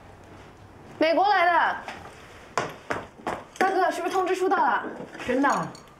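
A young woman calls out excitedly.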